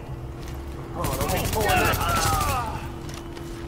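Gunshots crack in a rapid burst.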